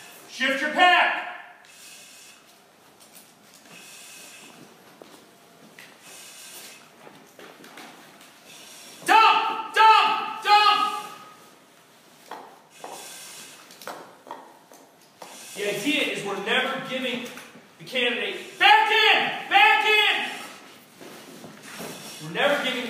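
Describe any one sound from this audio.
Heavy gear scrapes and shuffles on a rubber floor.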